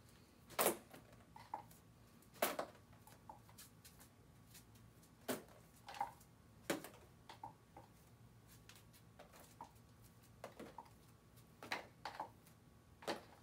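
Bare feet pad on a hard floor.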